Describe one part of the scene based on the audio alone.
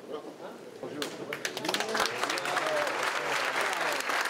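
A crowd claps and applauds.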